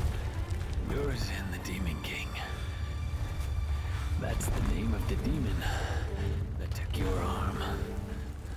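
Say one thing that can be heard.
A young man speaks quietly and tensely.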